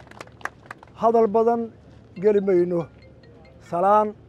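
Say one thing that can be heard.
A middle-aged man speaks loudly through a microphone in short, drawn-out phrases.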